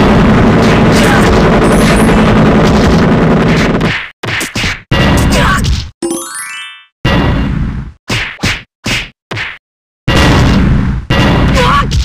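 Punches and kicks land with sharp thuds in a fight.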